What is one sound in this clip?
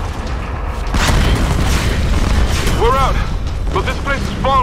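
A fiery explosion booms with a deep rumble.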